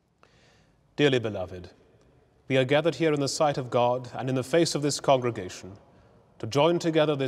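A man speaks calmly and solemnly in a large echoing hall.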